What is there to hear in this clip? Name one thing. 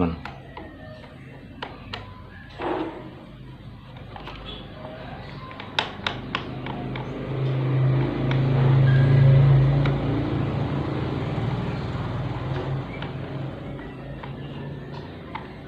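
A screwdriver clicks against a plastic fan motor housing.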